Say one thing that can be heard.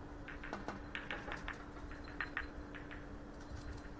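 Snooker balls click sharply against each other on a table.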